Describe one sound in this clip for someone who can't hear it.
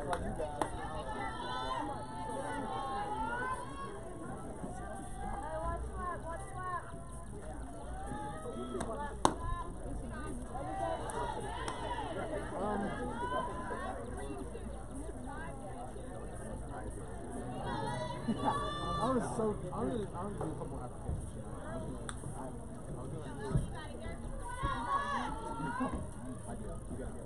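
Young women shout and cheer from a distance outdoors.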